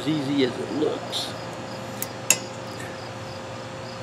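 A plastic wiper blade clicks into place on a wiper arm.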